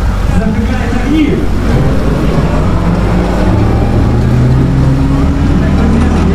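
Water churns and splashes behind a boat.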